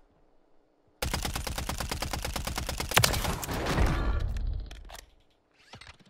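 A rifle fires rapidly in a long, loud burst.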